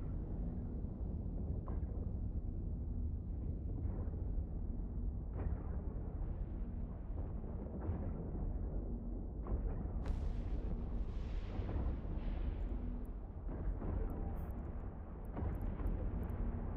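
A deep spaceship engine rumbles steadily.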